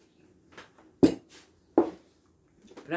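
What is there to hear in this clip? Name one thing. Glass clinks on glass.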